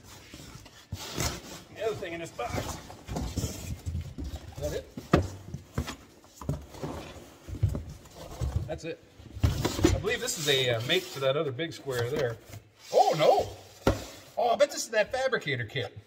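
Cardboard rustles and scrapes as a box is handled and opened.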